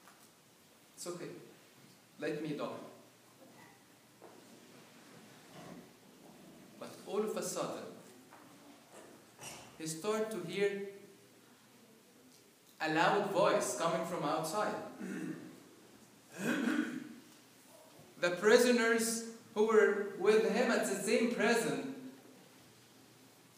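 A man preaches into a microphone with animation, in a large echoing hall.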